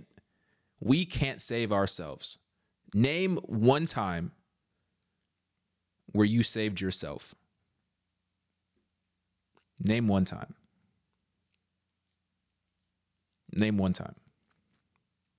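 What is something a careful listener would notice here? A man speaks with animation, close to a microphone, in short bursts with pauses.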